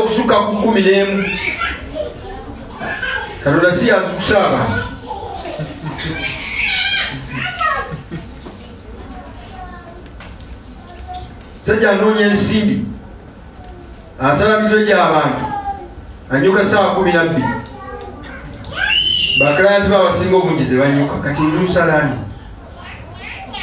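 A man speaks with animation into a microphone, heard through a loudspeaker in a room.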